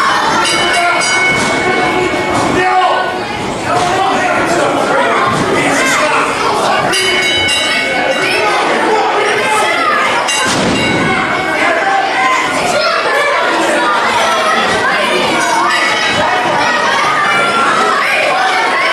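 A crowd chatters and cheers in an echoing hall.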